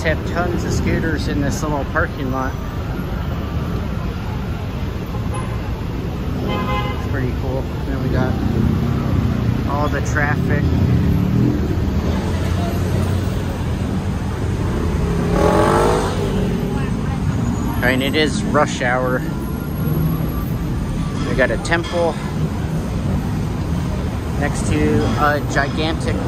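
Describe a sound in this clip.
Traffic rumbles steadily along a busy street below.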